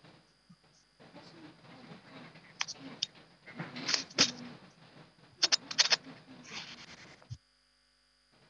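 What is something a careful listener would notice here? A man speaks faintly over a poor online call, breaking up.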